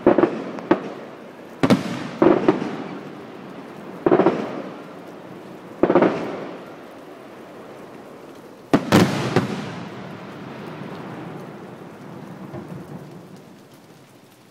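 Fireworks burst with loud booms that echo and rumble away.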